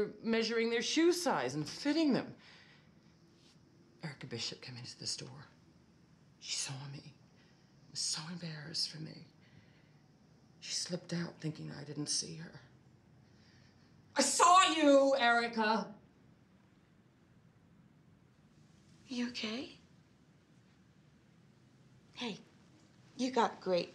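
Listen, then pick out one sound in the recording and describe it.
A woman speaks with agitation, close by.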